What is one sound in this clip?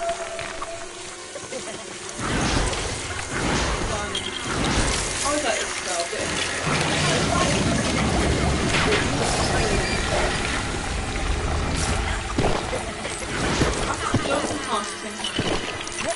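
Video game sound effects clatter and chime.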